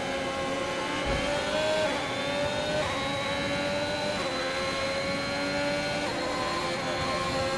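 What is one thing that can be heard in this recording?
A racing car engine screams at high revs, rising in pitch and dropping at each gear change.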